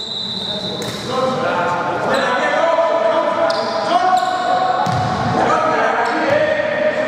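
Men call out loudly across an echoing gym.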